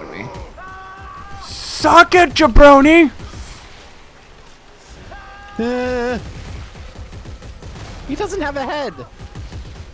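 A gun fires in short bursts.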